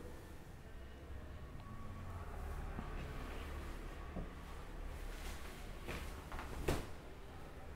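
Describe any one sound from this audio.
Silk cloth rustles softly as it is handled.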